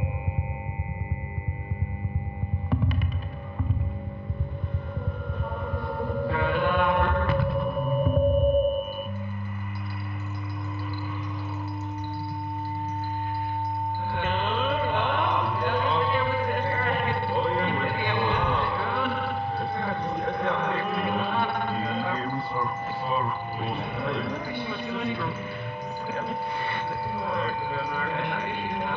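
Electronic tones drone and warble from a device a performer plays by hand.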